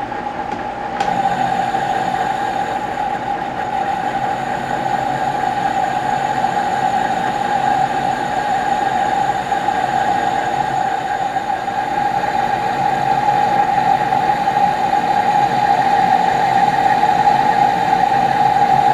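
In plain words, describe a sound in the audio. A cutting tool scrapes against a turning workpiece, growing louder.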